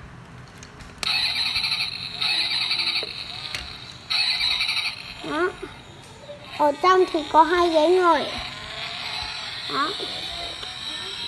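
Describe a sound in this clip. A toy truck plays a loud electronic siren tune through a small speaker.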